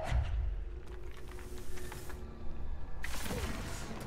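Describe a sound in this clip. A large object whooshes through the air and crashes.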